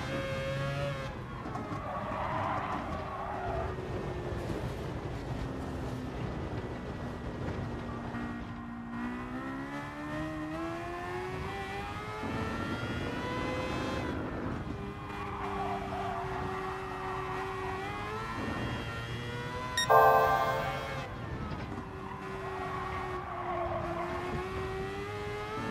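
A racing car engine revs up and down through gear changes.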